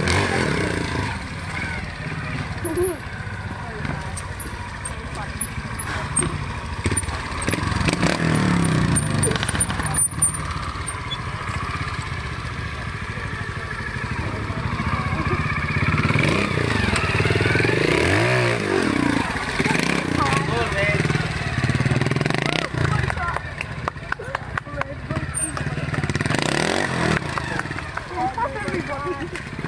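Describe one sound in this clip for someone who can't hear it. A motorcycle engine revs in sharp bursts nearby.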